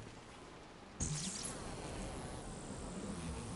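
A crackling energy blast bursts and roars.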